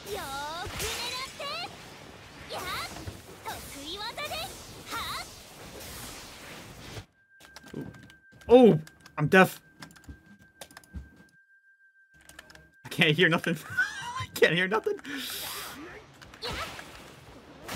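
Game attack effects whoosh and burst repeatedly.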